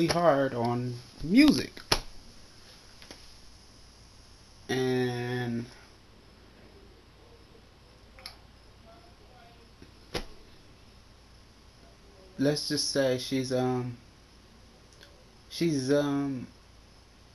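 A young man speaks close to the microphone in short bursts, with pauses between.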